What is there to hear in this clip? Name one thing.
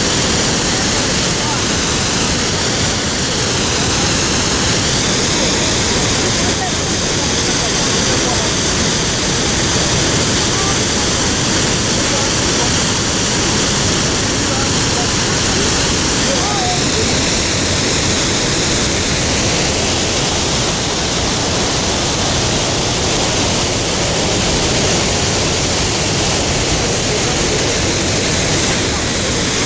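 A waterfall roars loudly close by.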